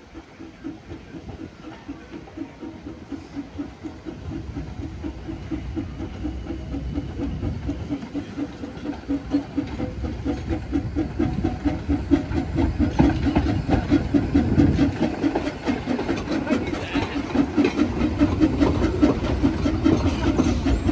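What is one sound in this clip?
A steam locomotive chuffs rhythmically as it approaches and grows louder.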